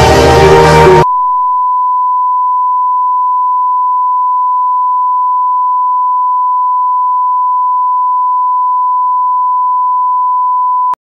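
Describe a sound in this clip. A steady, high-pitched test tone sounds without a break.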